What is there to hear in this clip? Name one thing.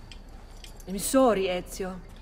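A man speaks calmly and apologetically, close by.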